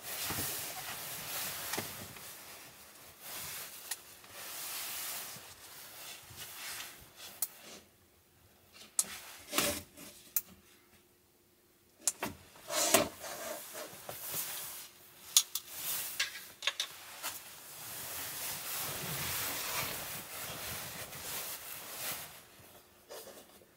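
A sleeping bag rustles close by.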